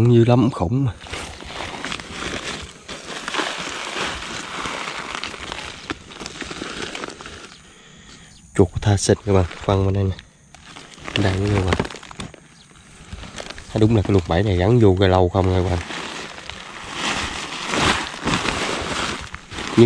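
A woven plastic sack crinkles and rustles as it is handled.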